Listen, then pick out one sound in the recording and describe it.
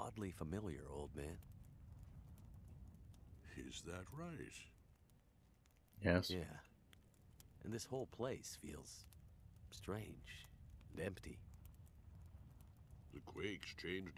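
An elderly man speaks slowly and calmly nearby.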